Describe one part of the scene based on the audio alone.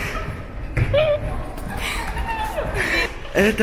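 A young woman laughs close by.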